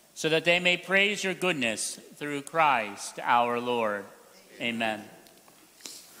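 A man sings through a microphone in an echoing hall.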